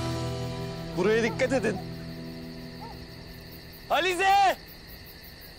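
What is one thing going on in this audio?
A young man calls out loudly.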